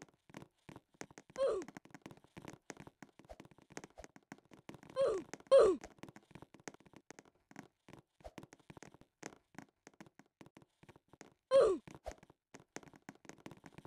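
Quick light footsteps patter on sand.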